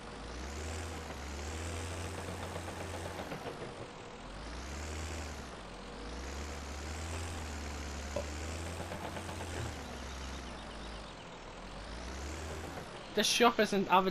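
A diesel engine rumbles low and rises and falls in pitch.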